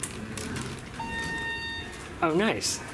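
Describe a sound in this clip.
An elevator chime rings with a steady tone.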